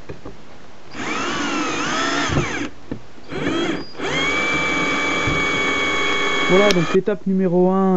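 An electric drill whirs in bursts as it drives a screw into wood.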